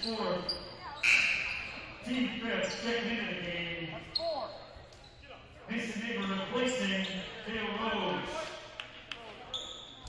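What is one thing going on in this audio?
A crowd in a large echoing gym cheers and talks.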